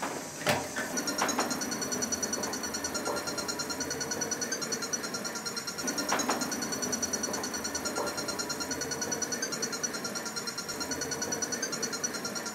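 A small toy motor whirs with a rapid, high, pulsing buzz.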